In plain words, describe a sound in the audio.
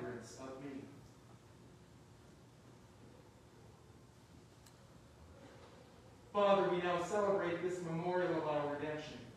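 A man chants in a slow, steady voice in a large echoing hall.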